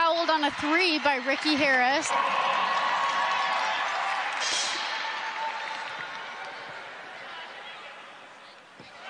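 A crowd in a large arena cheers and chants, then slowly fades.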